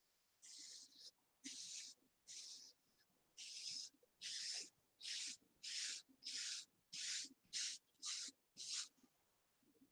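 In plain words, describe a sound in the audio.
A brush sweeps through short hair in quick, even strokes.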